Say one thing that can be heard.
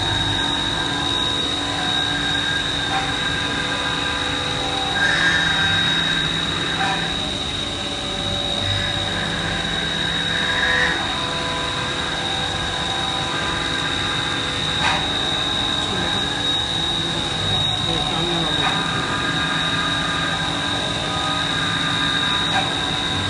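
Coolant sprays and hisses inside a machine enclosure.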